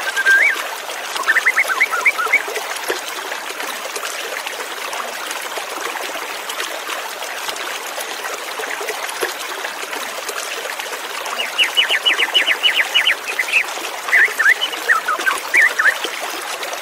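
A white-rumped shama sings in rapid whistled phrases.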